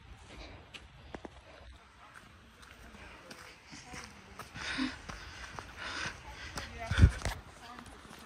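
Footsteps crunch on a dirt path.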